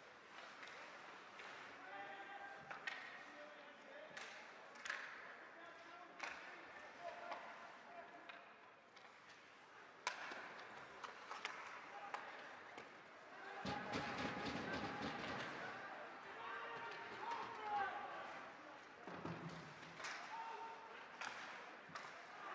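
A crowd murmurs and shouts in an echoing rink.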